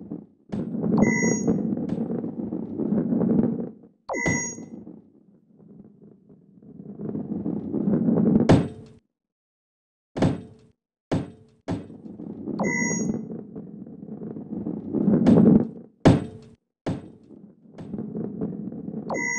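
A bright chime rings out several times.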